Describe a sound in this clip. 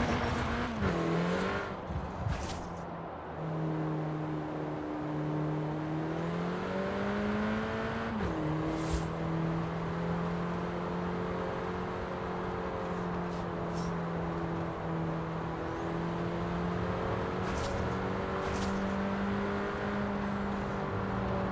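Tyres roll and hiss on the road.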